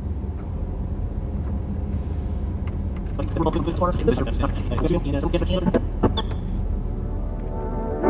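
A dial clicks as it is turned.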